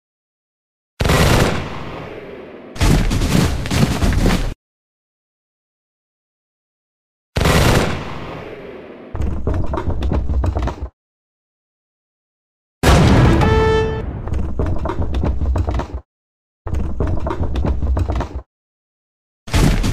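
Cannons boom loudly, each blast rumbling away.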